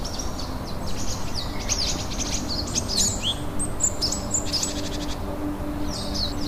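Wind blows steadily across an open hilltop.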